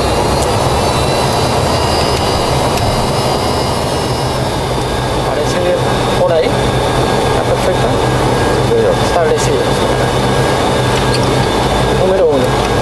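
An aircraft engine hums steadily from inside the cockpit.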